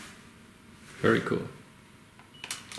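A button on a small device clicks.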